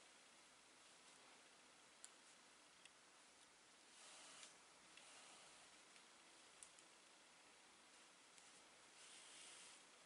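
Yarn rustles as stitches are pulled through.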